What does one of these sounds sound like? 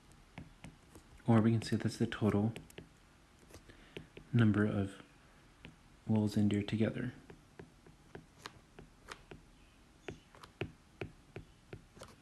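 A stylus taps and scratches lightly on a glass surface.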